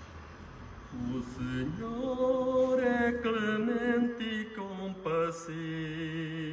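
A man reads aloud into a microphone, heard through a loudspeaker outdoors.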